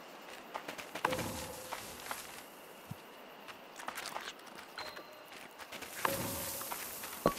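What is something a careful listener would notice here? An animal rustles and digs through snow and debris.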